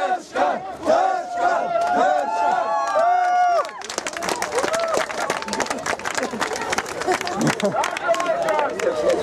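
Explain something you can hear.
A crowd of men and women sings loudly together outdoors.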